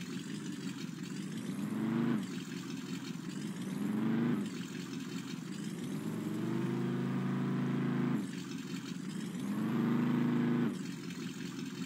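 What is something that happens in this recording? An engine revs repeatedly, rising in pitch and dropping off.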